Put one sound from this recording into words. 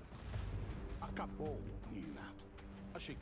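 A man speaks with intensity in a deep voice.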